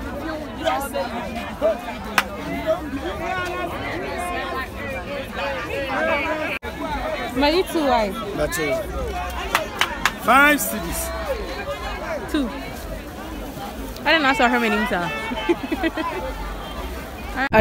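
Many voices of a crowd chatter all around outdoors.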